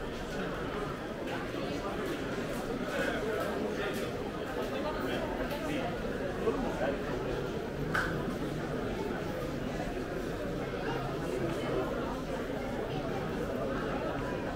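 A crowd of people chatters all around in a large echoing hall.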